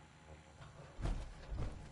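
Heavy metal footsteps thud on a hard floor.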